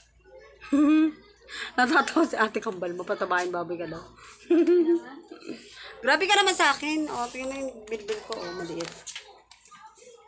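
A young woman talks and laughs close to the microphone.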